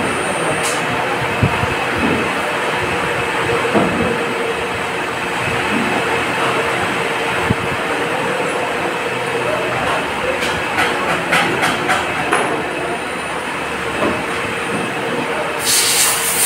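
A machine hums steadily with a constant drone.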